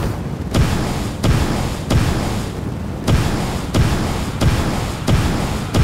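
Energy blasts fire and hit with heavy thumps.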